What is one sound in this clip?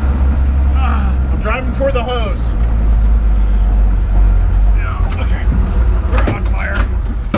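A man talks with animation close by, inside a moving vehicle.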